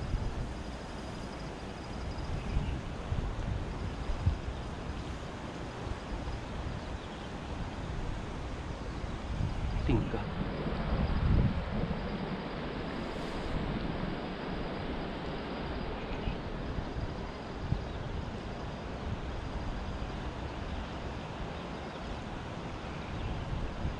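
A shallow river babbles and rushes over stones close by.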